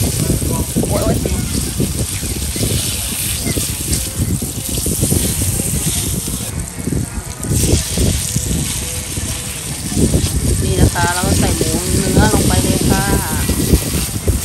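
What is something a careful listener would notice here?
Chopsticks clink against a metal pot.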